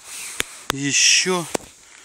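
Gloved hands scrape through loose soil and dry leaves.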